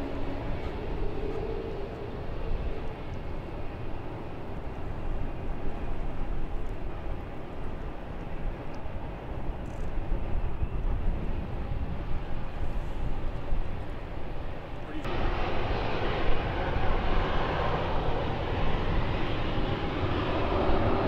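Jet engines rumble steadily nearby outdoors, then swell into a loud roar.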